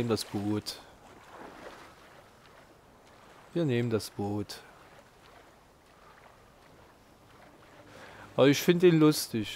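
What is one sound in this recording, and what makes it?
Water splashes as someone swims with steady strokes.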